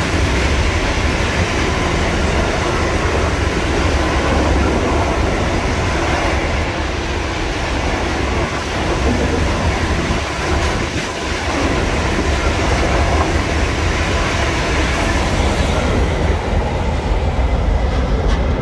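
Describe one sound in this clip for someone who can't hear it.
Train wheels clatter rhythmically over the rail joints.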